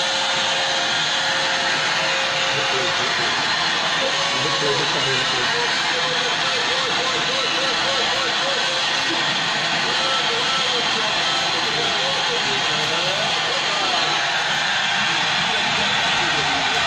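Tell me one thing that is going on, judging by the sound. A stadium crowd roars steadily through a small television speaker.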